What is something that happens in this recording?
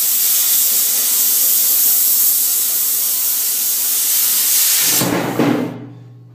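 An angle grinder whines loudly as it cuts metal.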